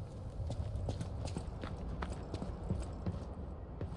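Footsteps clatter on wooden planks.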